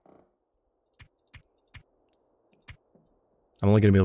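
Soft menu clicks tick several times as a setting is changed.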